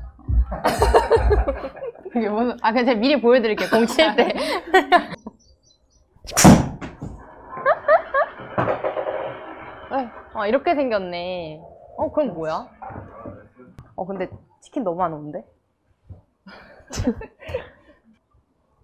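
Young women talk and laugh with animation nearby.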